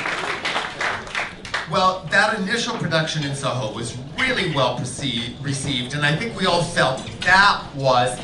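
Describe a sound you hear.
A man speaks with animation into a microphone, heard over loudspeakers.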